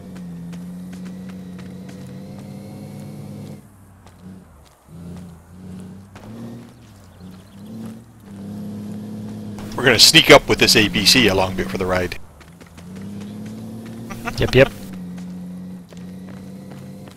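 Footsteps crunch over dry grass and dirt.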